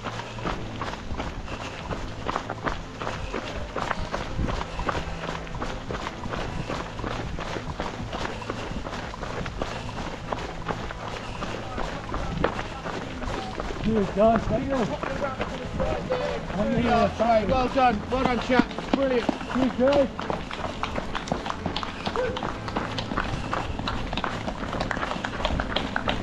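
Footsteps crunch steadily as a runner jogs along a trail.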